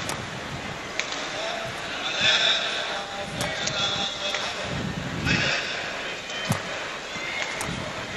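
Shuttlecock strikes off badminton rackets with sharp pops, back and forth.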